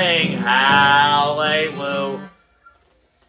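A man sings loudly up close.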